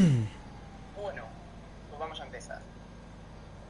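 A young man answers calmly.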